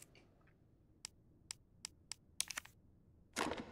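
Short menu clicks tick several times in quick succession.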